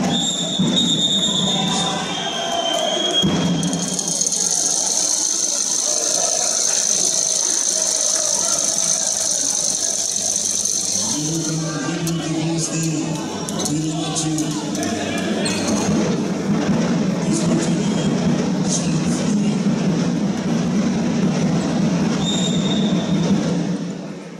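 A crowd cheers and chants in a large echoing hall.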